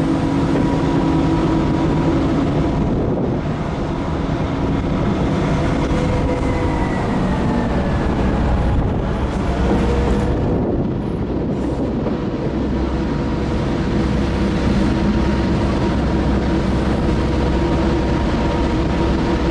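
Train wheels roll over the rails.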